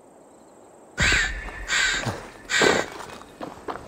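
A crossbow fires with a sharp snap.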